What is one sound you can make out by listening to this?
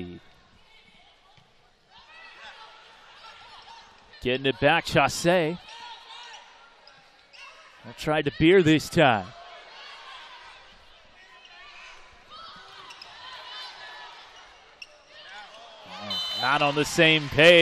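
A volleyball is struck hard with a sharp slap.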